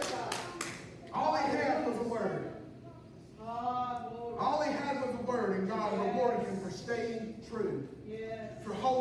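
A man speaks calmly into a microphone, heard through loudspeakers in a large room.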